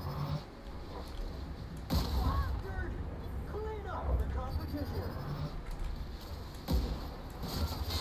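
A gun fires loud shots in bursts.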